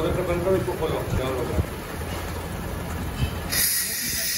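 A hose fitting clicks and clatters as it is pushed on.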